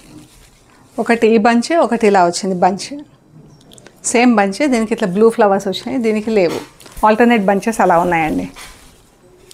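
A woman speaks clearly and with animation close to a microphone.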